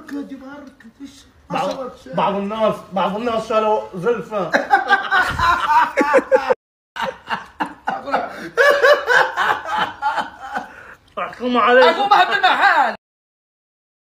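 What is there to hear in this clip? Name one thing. Several young men talk and laugh close by.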